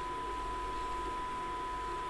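A marker squeaks softly across paper.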